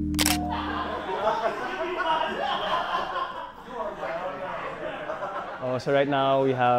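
A crowd of young men chatter and laugh nearby.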